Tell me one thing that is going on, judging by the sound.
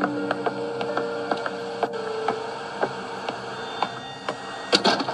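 Footsteps thud steadily across wooden floorboards.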